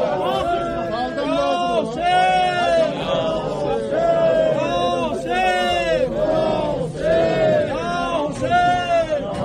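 A crowd of men chants loudly in unison close by.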